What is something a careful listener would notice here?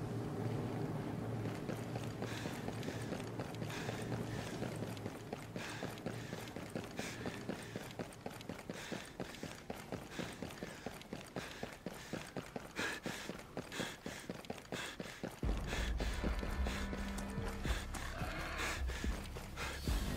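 Footsteps thud quickly on hard ground as a soldier runs.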